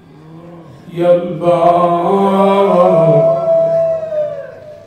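A man chants loudly and mournfully through a microphone.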